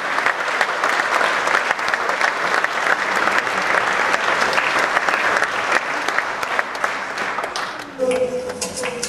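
An audience cheers and applauds loudly in a large hall.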